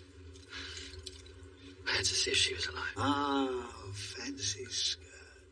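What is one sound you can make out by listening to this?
A young man speaks in a strained, pleading voice.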